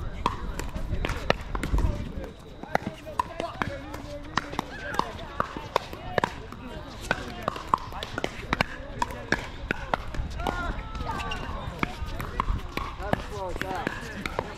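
Paddles hit a plastic ball with sharp hollow pops, over and over.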